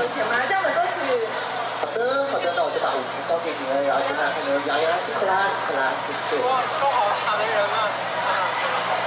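A man talks with animation through a loudspeaker.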